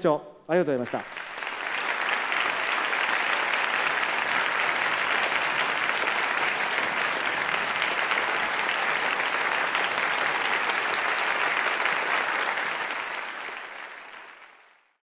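An audience applauds loudly and steadily, then fades.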